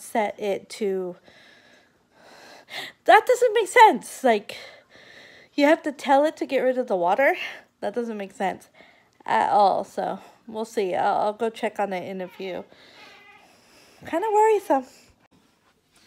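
A woman talks close to the microphone with animation.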